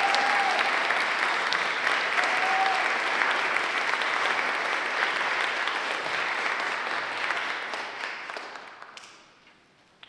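A concert band plays loudly in a large hall, then falls silent.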